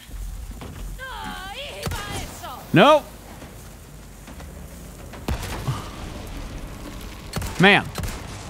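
A man speaks with animation into a close microphone, with sudden exclamations.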